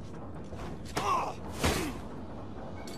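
A sharp blow lands with a heavy thud.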